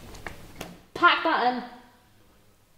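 A young woman speaks briefly nearby.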